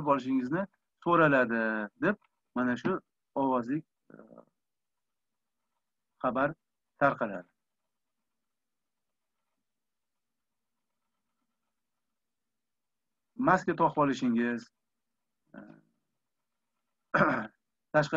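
A middle-aged man speaks calmly through a microphone over an online call, with long pauses.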